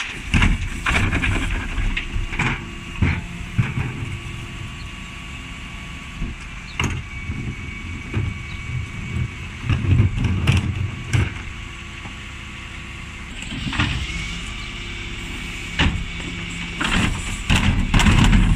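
A garbage truck's engine hums steadily nearby.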